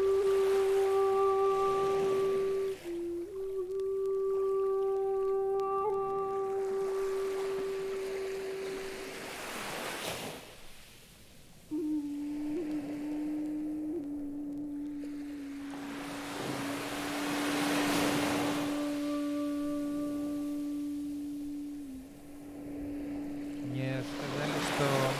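Electronic music with steady sustained tones and swelling washes of noise plays.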